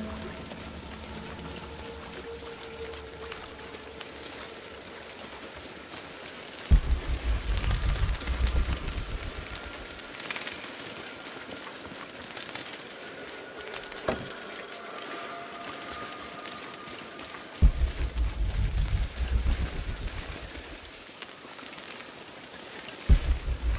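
Footsteps crunch on stone and gravel.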